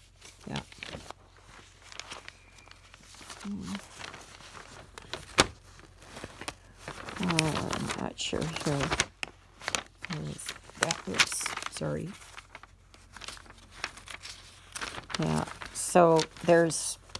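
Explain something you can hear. Glossy paper pages rustle and flap as they are leafed through close by.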